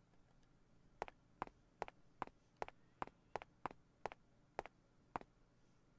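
Quick footsteps of someone running tap on a hard floor.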